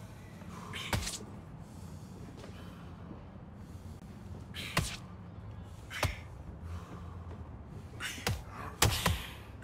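Boxing gloves thud against a body in quick punches.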